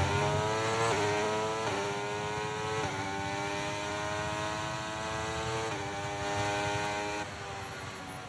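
A racing car engine screams at high revs, climbing in pitch between quick gear shifts.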